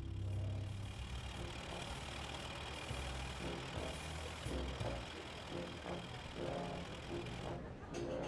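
A car engine rumbles as a car drives slowly along a narrow street.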